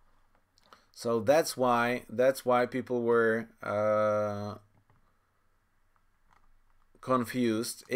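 A man speaks close to a microphone, reading out with animation.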